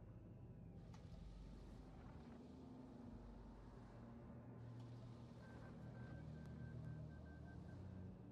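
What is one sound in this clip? A soft electronic chime sounds.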